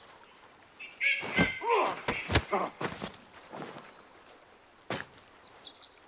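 Blows thud in a short scuffle.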